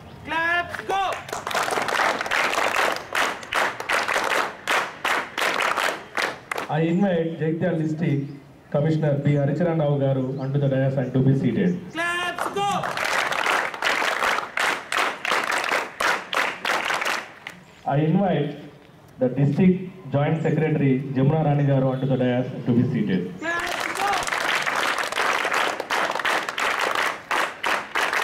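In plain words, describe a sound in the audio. A group of children claps in rhythm.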